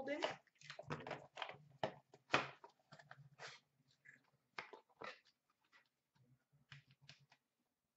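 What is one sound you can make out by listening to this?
Hands open a small cardboard box with soft scraping and clicks.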